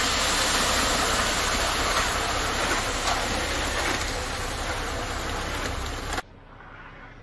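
Wet concrete pours and slops from a chute.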